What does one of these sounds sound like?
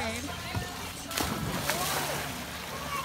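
A boy splashes into a pool.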